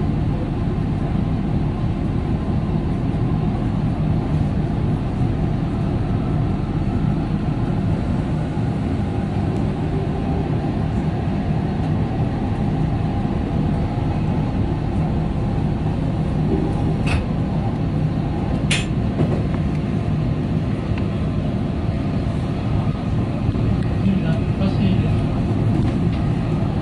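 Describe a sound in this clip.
An electric commuter train runs along the track, rumbling as heard from inside.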